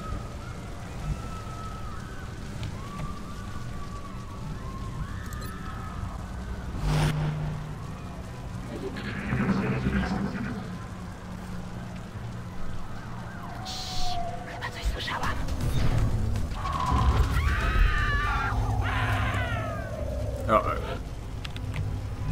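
Fires crackle and roar steadily.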